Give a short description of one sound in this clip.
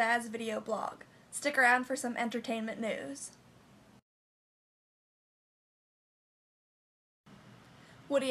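A young woman talks close up, with animation.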